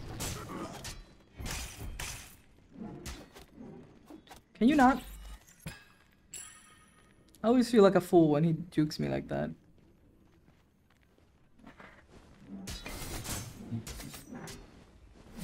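A sword strikes and magic blasts burst in a fight.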